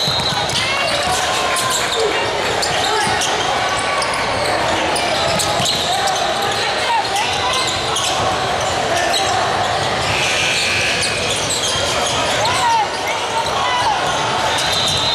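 Basketball dribbles thud on the court.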